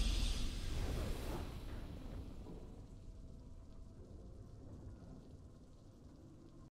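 A triumphant game fanfare rings out and slowly fades.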